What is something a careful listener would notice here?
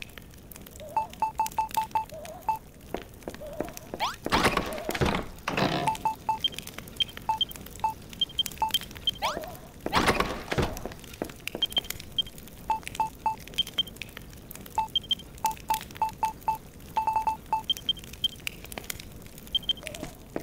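Short electronic menu beeps tick rapidly again and again.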